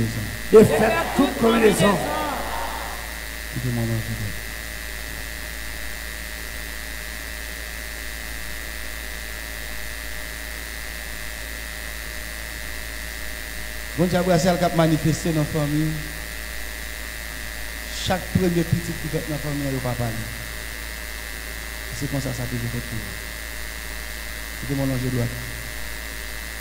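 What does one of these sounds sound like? A man prays loudly into a microphone, in bursts with long pauses, echoing in the room.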